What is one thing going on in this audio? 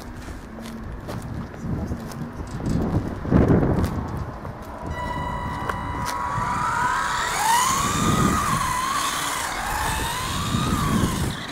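Small tyres rumble on rough asphalt.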